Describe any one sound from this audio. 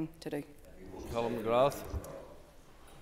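An elderly man speaks through a microphone.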